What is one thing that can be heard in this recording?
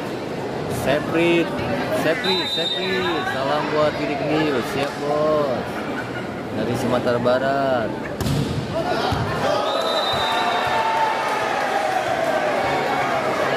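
A volleyball is struck hard with sharp slaps.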